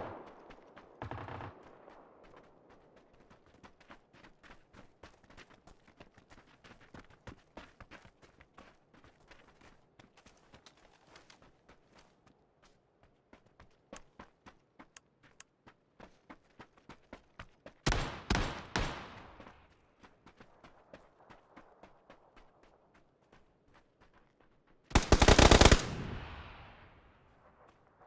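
Footsteps crunch quickly over sand and gravel.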